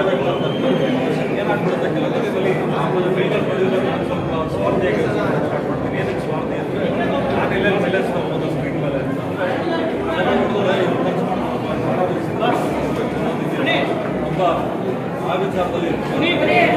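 A man speaks firmly into close microphones.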